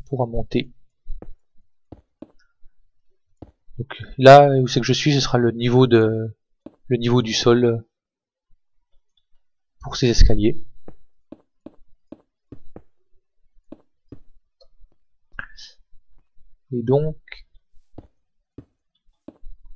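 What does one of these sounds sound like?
Stone blocks are set down one after another with soft, dull thuds.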